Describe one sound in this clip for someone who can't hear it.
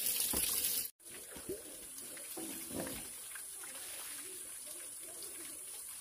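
A metal pot scrapes and clanks as it is lifted from the ground.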